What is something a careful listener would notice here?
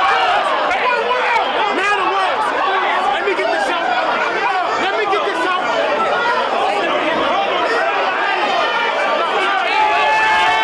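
A young man raps loudly and with energy.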